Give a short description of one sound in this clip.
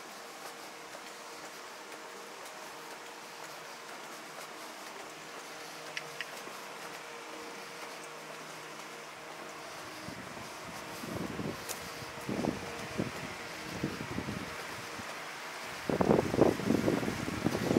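A low city hum fills the night air.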